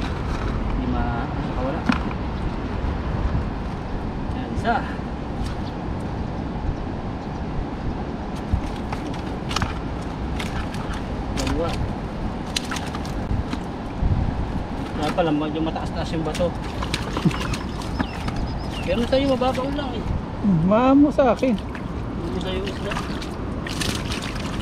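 Shallow water trickles steadily over stones outdoors.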